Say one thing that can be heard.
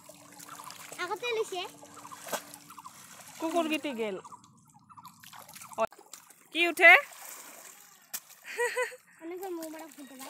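A young woman talks and calls out with animation close by.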